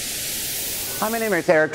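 A man begins speaking close to a microphone.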